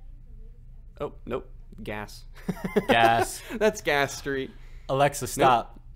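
A young man laughs close into a microphone.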